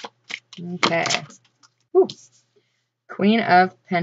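A card is laid down on a table with a soft tap.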